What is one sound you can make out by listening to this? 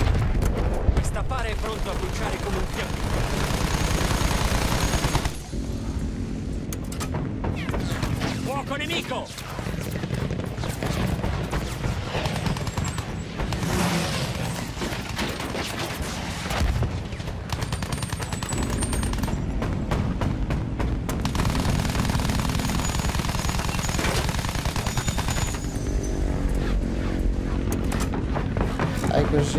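A biplane engine drones steadily.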